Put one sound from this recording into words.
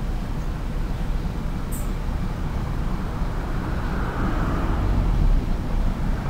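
A steam locomotive chuffs slowly in the distance.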